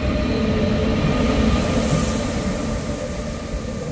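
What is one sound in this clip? An electric locomotive hums and whines as it passes.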